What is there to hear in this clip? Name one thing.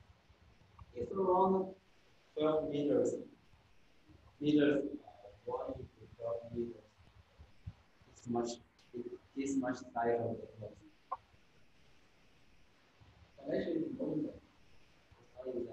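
A young man speaks calmly close by, explaining in pauses.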